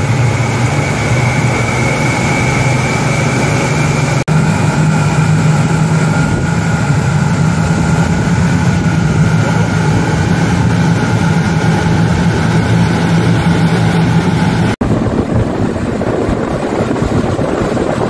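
Water churns and rushes behind a fast boat.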